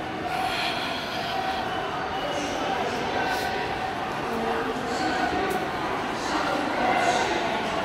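A man's footsteps hurry along a hard walkway.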